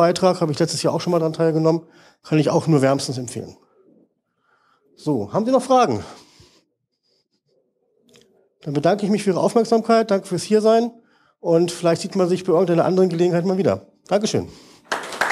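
A man speaks into a microphone over loudspeakers in a hall, explaining calmly.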